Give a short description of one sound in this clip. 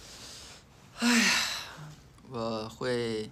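A young man speaks softly and close to a phone's microphone.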